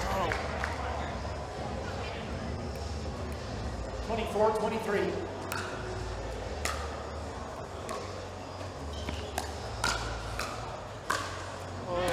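Paddles strike a ball with sharp pops in a rally.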